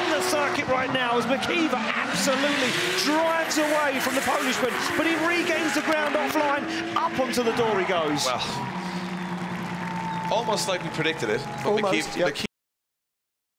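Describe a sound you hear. Racing car engines rev hard and roar.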